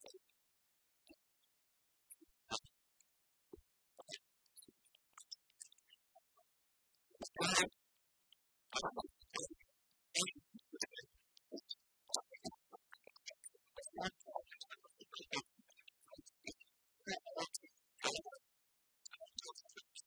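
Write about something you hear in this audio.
Keys clack on laptop keyboards.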